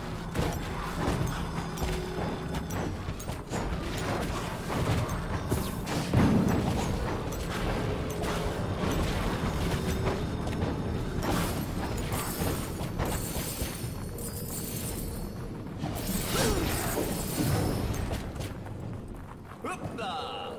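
Magic blasts and clashing blows crackle in a fast fight.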